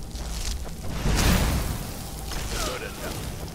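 A fiery blast whooshes and roars.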